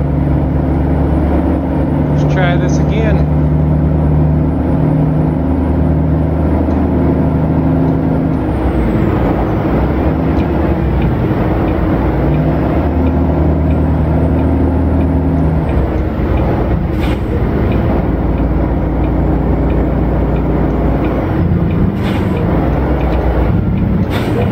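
Tyres roll over the road with a steady rush.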